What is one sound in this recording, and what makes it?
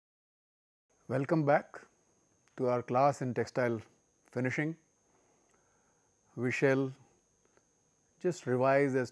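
An elderly man speaks calmly into a clip-on microphone, in short phrases with pauses.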